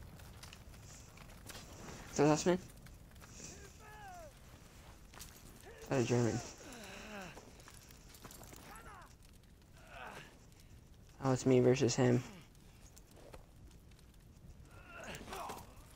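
A fire crackles and hisses nearby.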